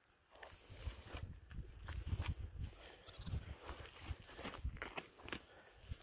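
A hand hoe chops into dry, crumbly soil.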